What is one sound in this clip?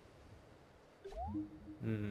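A short rising chime sounds as a message pops up.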